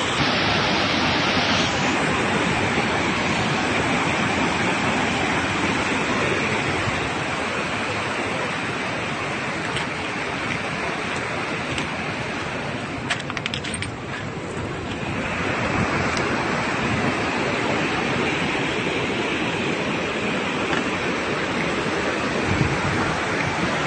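Floodwater roars and rushes through a broken dam, loud and steady.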